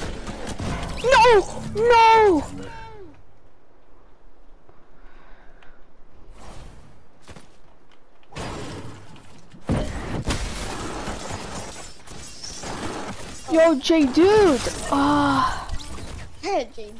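A launch pad fires with a rushing whoosh.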